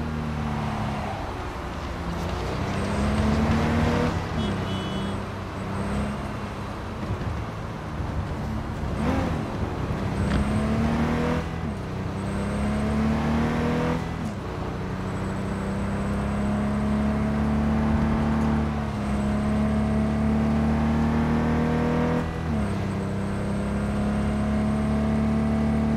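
A car engine roars, revving up and dropping with each gear change.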